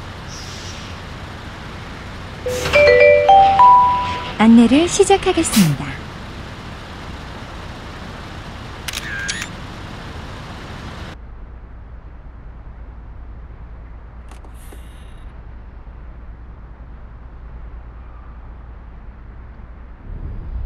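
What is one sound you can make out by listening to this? A truck engine idles with a low, steady rumble.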